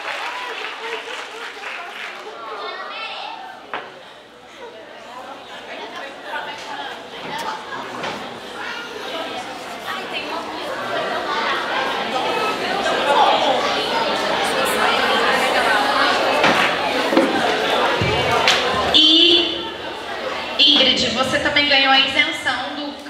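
A woman speaks into a microphone through loudspeakers in a large echoing hall.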